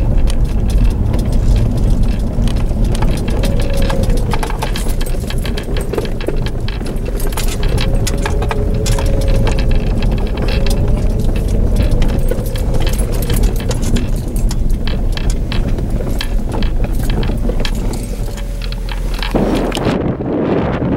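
A vehicle engine rumbles steadily from inside the cabin.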